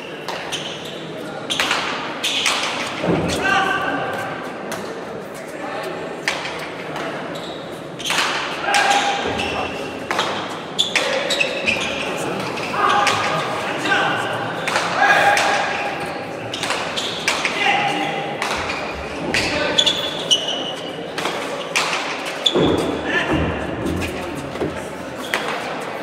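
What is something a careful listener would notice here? A hard ball smacks loudly against a wall again and again in an echoing hall.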